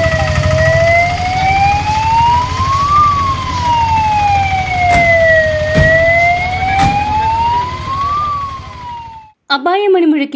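A siren wails up and down close by.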